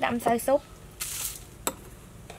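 Dry powder pours with a soft hiss onto herbs in a metal bowl.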